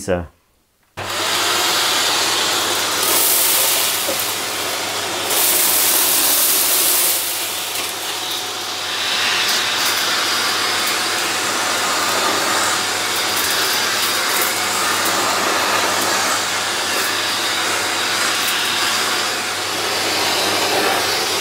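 A vacuum cleaner runs with a steady roar and whoosh of suction.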